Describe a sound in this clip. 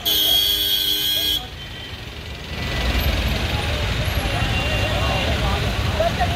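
A crowd of men talk and murmur outdoors.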